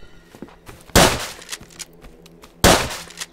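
A shotgun fires twice with loud blasts.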